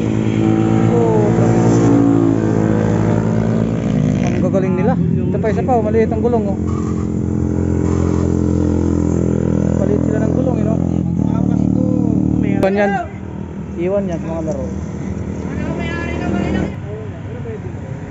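Motorcycle engines roar loudly as bikes speed past.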